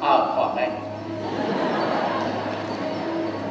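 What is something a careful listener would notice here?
An audience laughs in a large hall.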